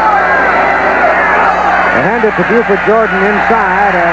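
Football players crash together in a pile-up.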